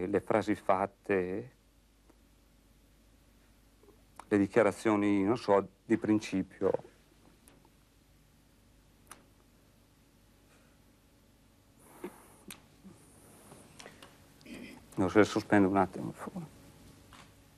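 A man speaks slowly and haltingly, close by, with long pauses.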